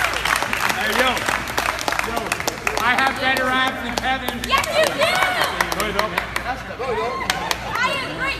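A crowd of spectators cheers and claps.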